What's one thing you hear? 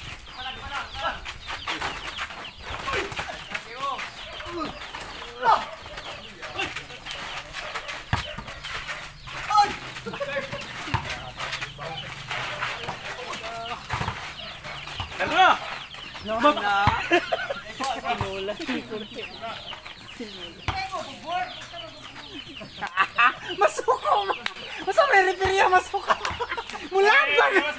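Young men shout and talk with animation outdoors.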